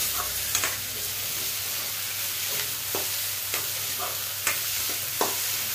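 A metal spatula scrapes and clinks against a metal wok.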